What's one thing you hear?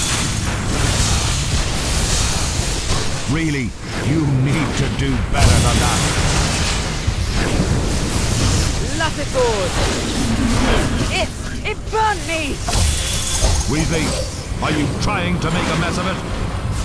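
Magic spells blast and crackle in quick bursts.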